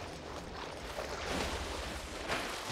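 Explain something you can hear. Water splashes heavily as something plunges in.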